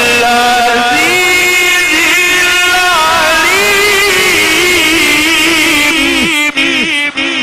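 A man sings a slow, wavering melody into a microphone.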